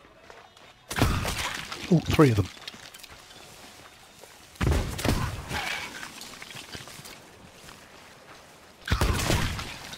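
A gun fires loud blasts several times.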